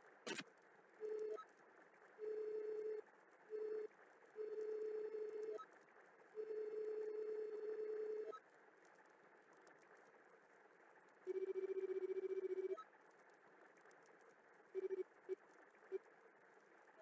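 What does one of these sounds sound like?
Game dialogue text blips in quick, buzzy bursts.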